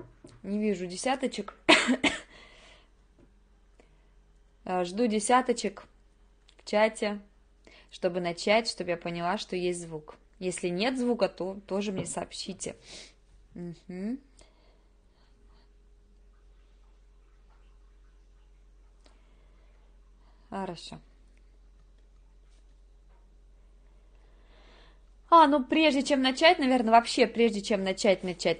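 A woman speaks calmly into a nearby microphone, with pauses.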